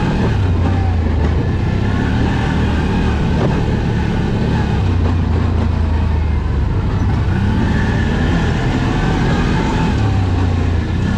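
An all-terrain vehicle engine rumbles steadily close by.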